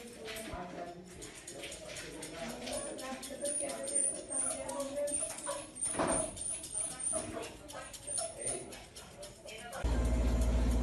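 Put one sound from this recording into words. Scissors snip through dog fur close by.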